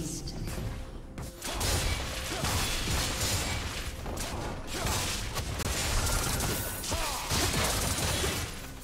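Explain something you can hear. Spell effects whoosh and crackle in a fast video game battle.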